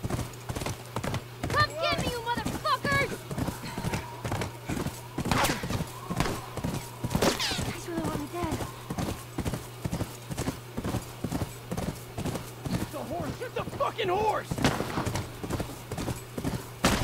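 A horse gallops with quick, steady hoofbeats on packed snow.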